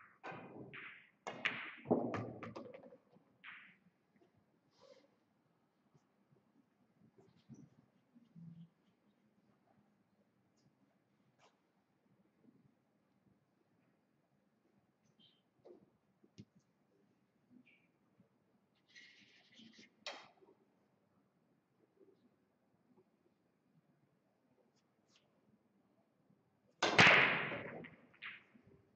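A cue strikes a pool ball and the balls clack together.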